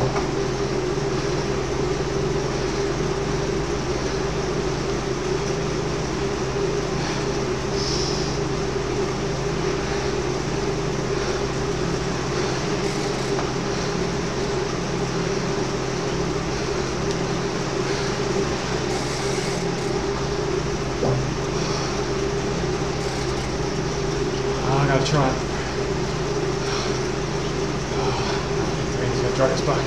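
A man talks breathlessly close to a microphone.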